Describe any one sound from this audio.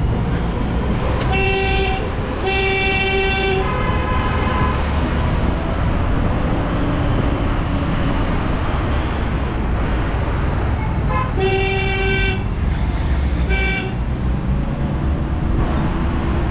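A motorbike engine rumbles steadily close by.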